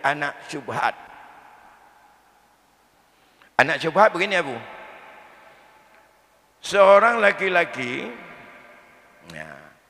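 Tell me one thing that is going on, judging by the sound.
An elderly man speaks slowly and calmly into a microphone, with his voice echoing in a large hall.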